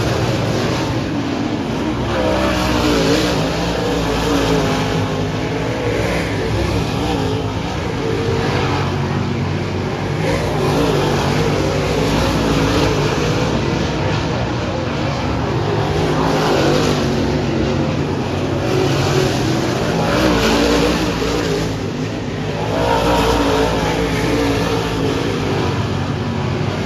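Engines rev up and down as cars slide through the turns.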